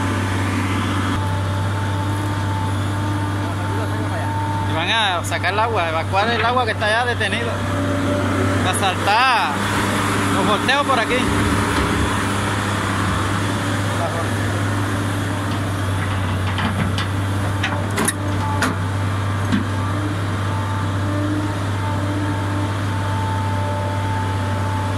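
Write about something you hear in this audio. An excavator bucket scrapes and digs into soil.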